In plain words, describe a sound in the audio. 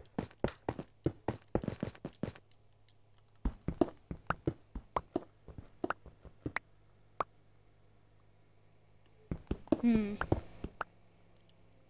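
A pickaxe chips at stone in quick, repeated knocks.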